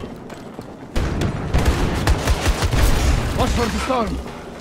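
An automatic rifle fires a loud burst.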